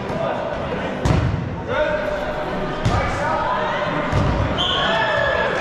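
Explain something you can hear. A ball thumps as it is thrown and caught.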